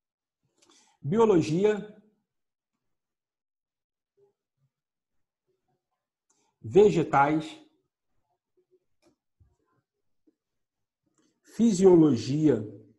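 A middle-aged man speaks calmly in short phrases, close to a microphone, with pauses between.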